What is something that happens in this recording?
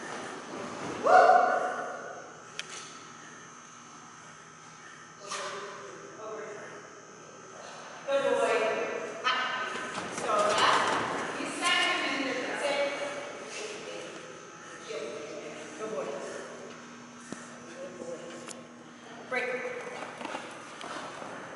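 A woman calls out commands and praise with animation, in a large echoing hall.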